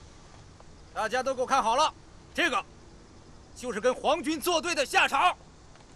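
A middle-aged man shouts angrily close by.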